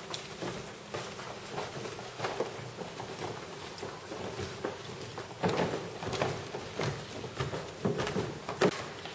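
Footsteps thump on wooden stairs.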